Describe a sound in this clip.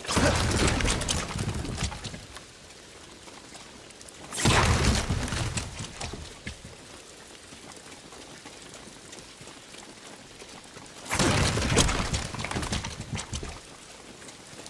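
Bamboo fences crash and splinter as a sword cuts through them.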